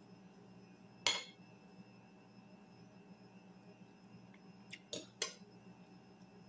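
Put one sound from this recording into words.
A metal fork and knife clink and scrape on a ceramic plate.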